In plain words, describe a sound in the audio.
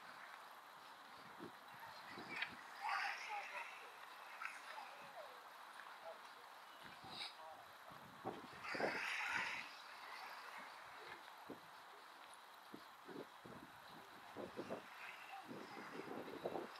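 Wind blows and buffets in the open air.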